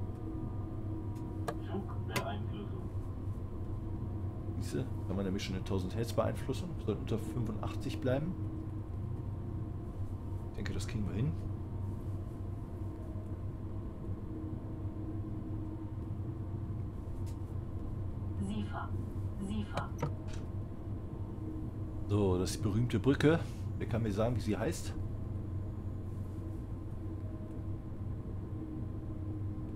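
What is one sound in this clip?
An electric train hums and rumbles steadily along the tracks.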